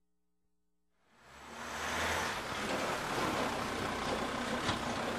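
A car drives past on a street.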